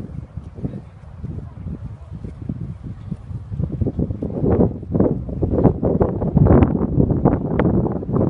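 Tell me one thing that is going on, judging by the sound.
A pony's hooves thud on sand as it canters.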